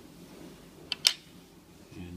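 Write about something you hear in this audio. A small plastic shell clicks as it is pulled loose.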